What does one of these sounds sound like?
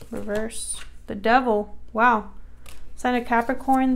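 A playing card is laid down on a table with a soft slap.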